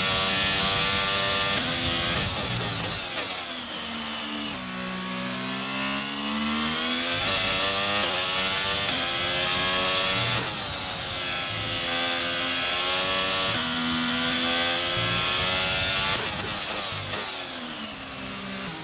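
A racing car engine screams, rising and falling in pitch as it shifts gears.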